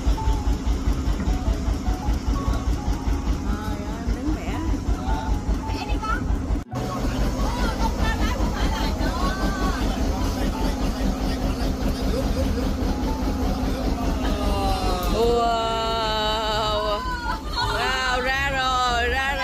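A boat engine chugs steadily nearby.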